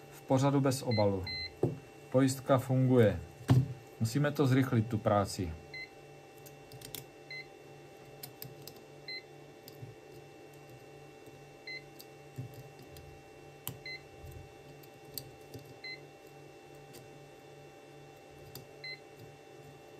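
A multimeter beeps briefly now and then.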